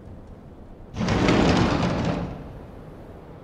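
A door slides open with a loud rumble.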